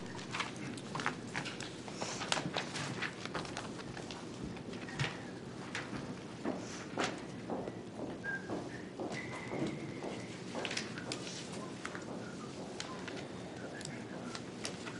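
Papers rustle and shuffle close to a microphone.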